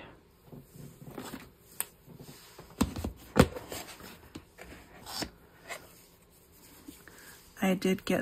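A plastic box knocks and rattles against a table.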